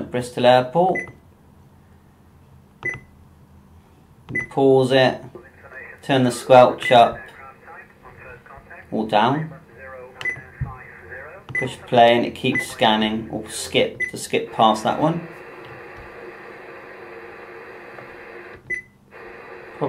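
A radio scanner beeps as its keys are pressed.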